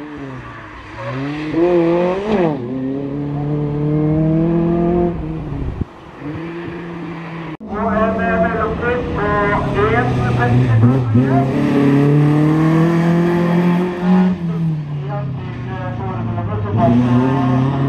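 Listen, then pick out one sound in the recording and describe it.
A rally car engine revs hard and roars past.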